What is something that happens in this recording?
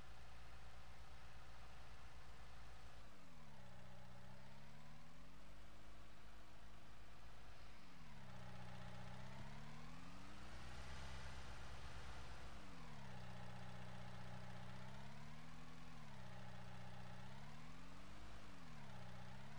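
A diesel engine hums and revs up and down as a vehicle drives.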